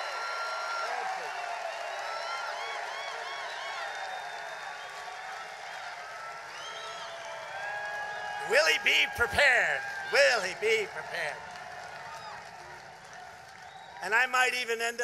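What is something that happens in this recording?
A crowd cheers and claps in a large arena.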